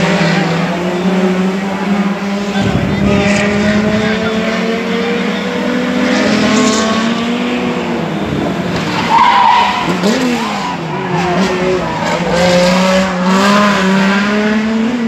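Racing car engines roar and rise in pitch as the cars speed closer.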